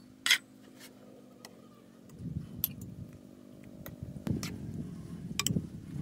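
A metal ladle clinks against a metal pot.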